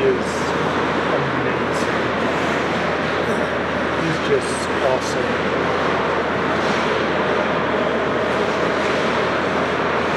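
Ice skates scrape and hiss across ice.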